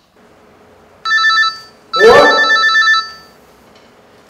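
A phone rings with a bright electronic tone.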